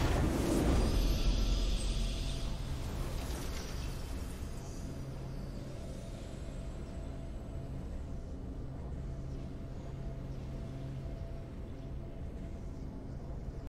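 A triumphant video game fanfare plays and slowly fades.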